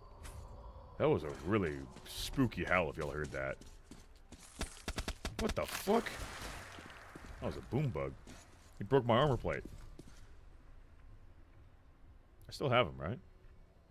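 A young man with a deep voice talks with animation, close to a microphone.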